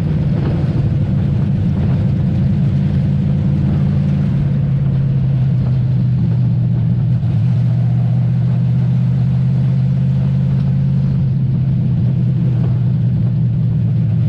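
A race car engine roars loudly and steadily from inside the car.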